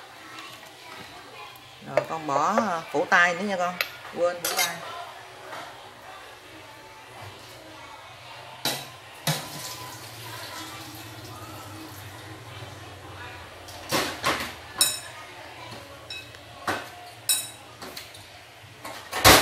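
A pot of liquid simmers and bubbles softly.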